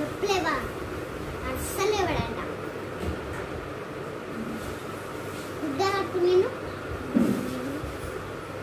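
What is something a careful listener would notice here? A young boy speaks in a high voice close by, in short bursts.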